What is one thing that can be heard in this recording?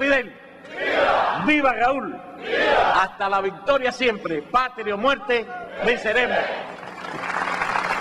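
An elderly man speaks forcefully through microphones and loudspeakers, echoing outdoors.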